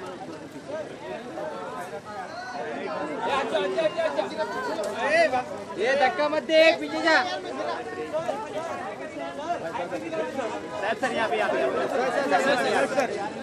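A crowd of men and women shout and call out excitedly close by.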